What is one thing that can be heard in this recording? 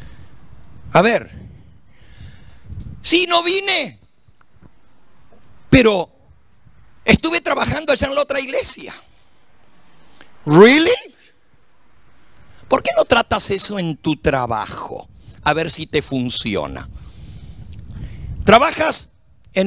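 An elderly man preaches with animation into a microphone, in bursts with pauses.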